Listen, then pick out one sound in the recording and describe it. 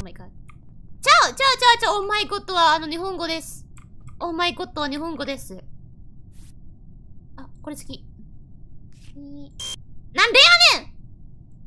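A second young woman talks and exclaims with animation through a microphone.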